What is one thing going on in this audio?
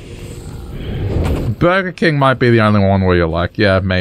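Fire spells whoosh and crackle.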